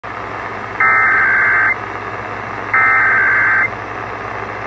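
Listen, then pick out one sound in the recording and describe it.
A radio sounds two long, high electronic beeps.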